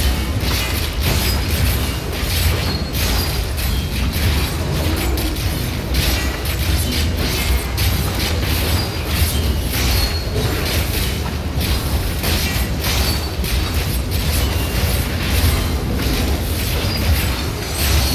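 Lightning spells crackle and zap in a video game fight.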